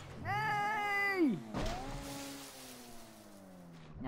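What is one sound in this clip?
Water splashes loudly as a buggy plunges in.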